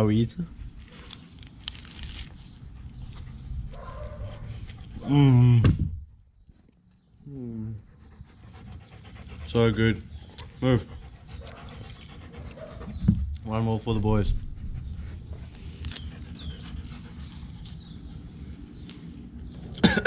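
A young man chews and smacks his lips while eating.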